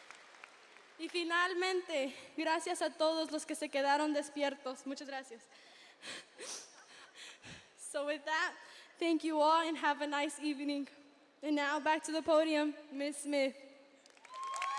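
A young woman speaks with animation through a microphone in a large echoing hall.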